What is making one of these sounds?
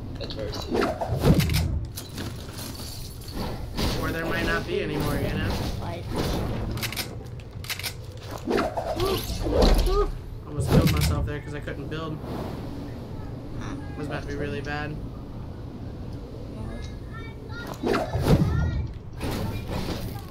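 Game gunshots and impacts crack in bursts.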